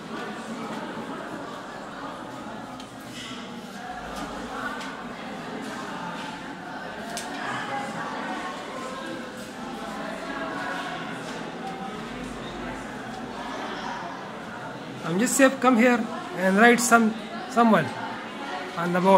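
Many children murmur and chatter quietly in a room.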